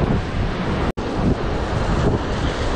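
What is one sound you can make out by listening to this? Waves crash and surge against rocks close by.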